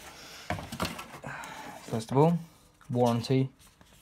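A paper booklet rustles as it is handled.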